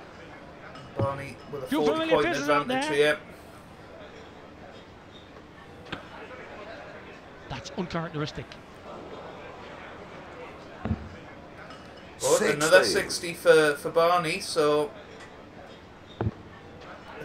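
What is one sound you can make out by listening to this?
A dart thuds into a dartboard.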